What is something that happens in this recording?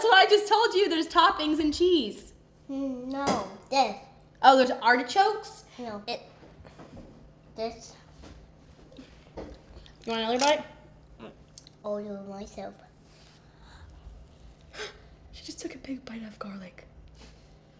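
A little girl talks with animation close by.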